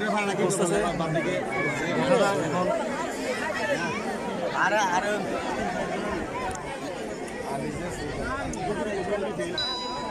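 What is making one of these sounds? A crowd of men and women talk and call out all at once nearby, outdoors.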